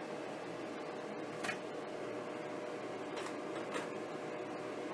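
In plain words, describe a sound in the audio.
Plastic trays click and clatter as they are set in place.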